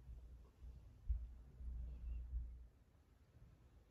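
Glass jars knock softly on a wooden table.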